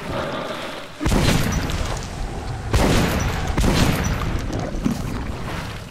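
A gun fires loud shots in bursts.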